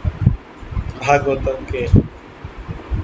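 A middle-aged man speaks briefly and calmly over an online call.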